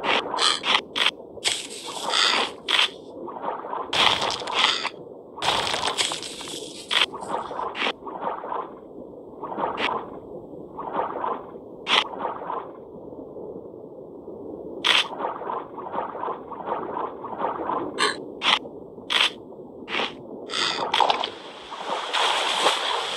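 Underwater bites crunch again and again with short splashes.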